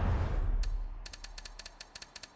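Menu selections click in quick succession.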